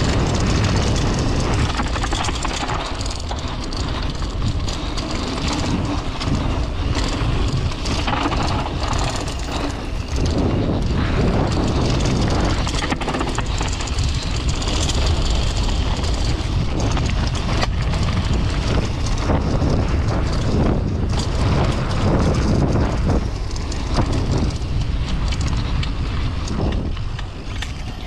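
A bicycle frame and chain rattle over bumps.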